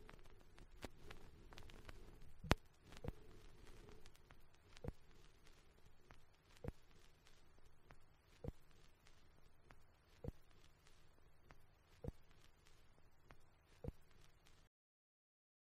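A vinyl record crackles and ticks with a steady, regular click as it turns.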